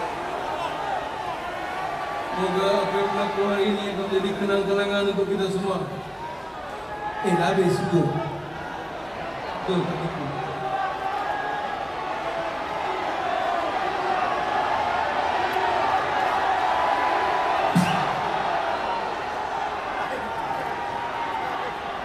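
A live band plays loud music in a large echoing arena.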